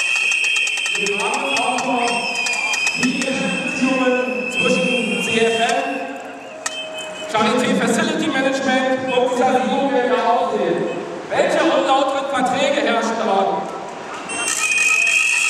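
A man speaks loudly into a microphone, heard through a loudspeaker outdoors.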